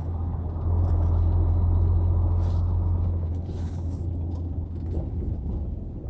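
A large engine hums steadily and low from inside a moving vehicle.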